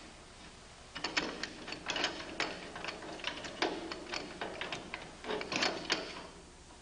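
Metal parts clank and knock as they are handled.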